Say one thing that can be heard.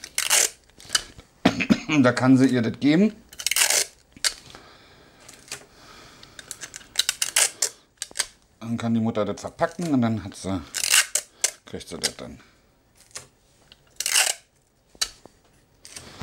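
Plastic wrapping crinkles and rustles in a man's hands.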